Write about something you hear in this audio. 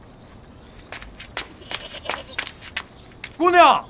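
A man's footsteps thud on hard ground.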